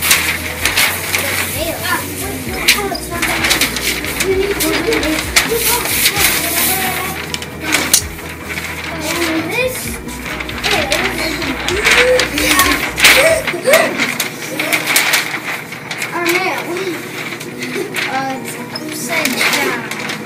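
Young boys talk with animation close by, in a room with some echo.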